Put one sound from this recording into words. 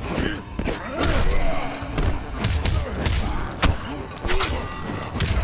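Heavy punches and kicks land with loud thuds.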